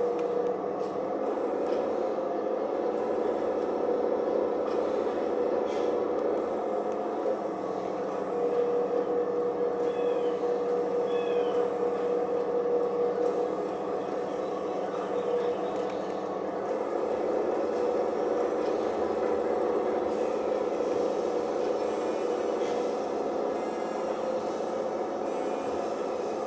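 A tractor engine drones steadily from a television speaker.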